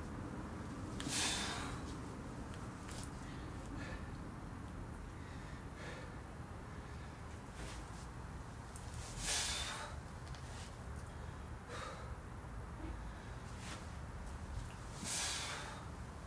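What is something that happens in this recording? A man exhales sharply with each sit-up.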